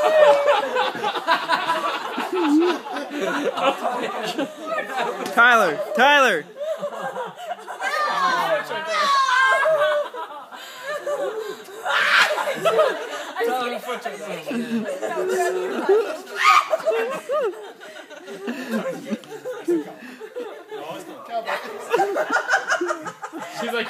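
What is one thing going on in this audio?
Several young people laugh loudly and heartily close by.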